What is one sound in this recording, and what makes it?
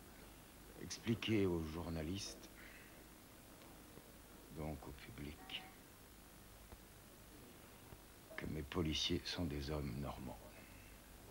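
A middle-aged man speaks slowly and thoughtfully close by.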